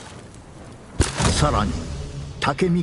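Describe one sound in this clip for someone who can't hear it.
A flaming arrow whooshes and thuds into the ground.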